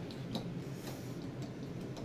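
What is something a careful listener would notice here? A finger presses an elevator floor button with a soft click.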